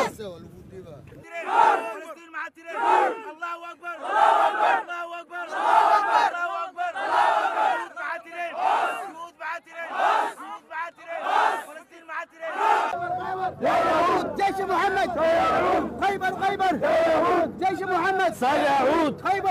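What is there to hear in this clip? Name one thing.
A crowd of men chants loudly in rhythmic bursts close by.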